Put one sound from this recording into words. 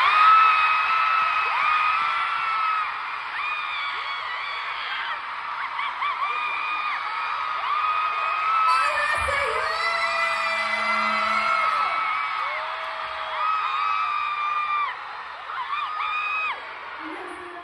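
A crowd of fans screams and cheers loudly in a large hall.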